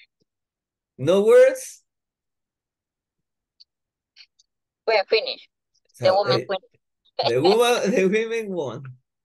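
A man speaks animatedly over an online call, in short bursts with pauses.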